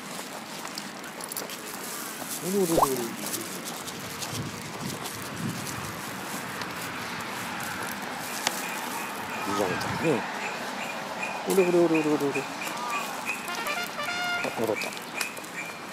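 Footsteps scuff along a paved path.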